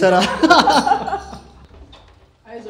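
A man laughs heartily nearby.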